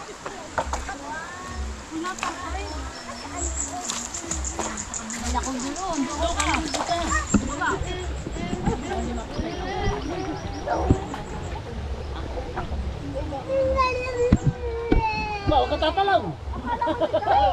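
A shallow stream ripples over stones.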